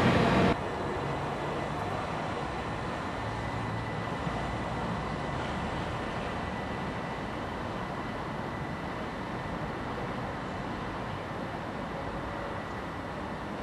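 An electric train rumbles slowly along the track with a steady hum.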